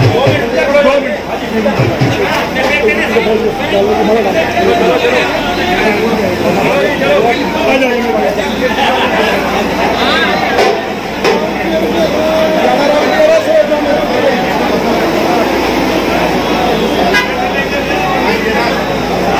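A crowd of men chatters and calls out loudly outdoors.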